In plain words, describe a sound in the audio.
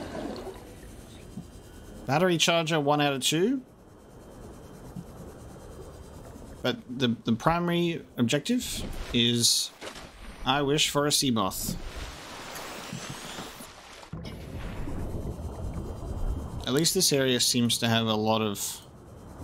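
Water bubbles and rushes as a small submarine moves.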